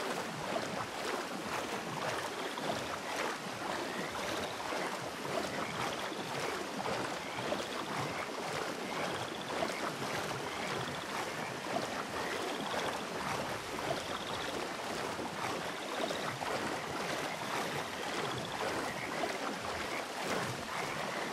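Water splashes and swishes as a person wades through deep water.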